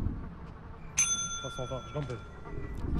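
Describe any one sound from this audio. A bell rings in a game.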